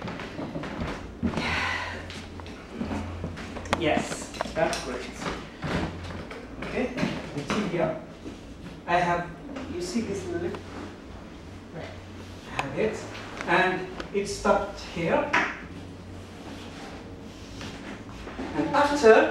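A middle-aged man talks calmly as he explains, close by.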